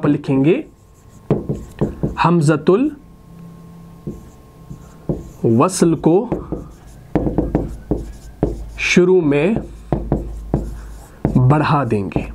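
A man speaks calmly and clearly, in short phrases.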